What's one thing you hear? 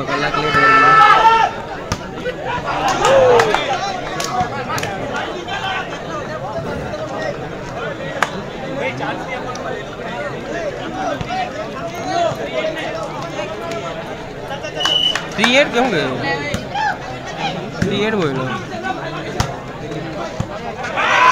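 Players shout to each other on the court.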